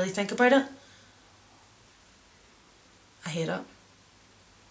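A young woman speaks briefly and calmly, close by.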